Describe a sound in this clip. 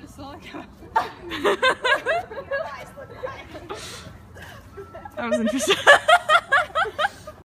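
Several people talk and laugh outdoors.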